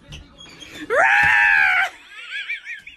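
A woman shrieks loudly close by.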